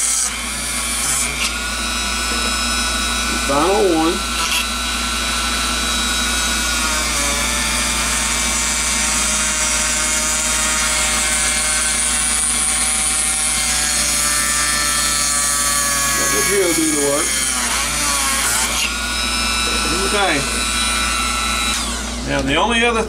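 A high-speed rotary tool whines as it grinds into a metal capacitor can.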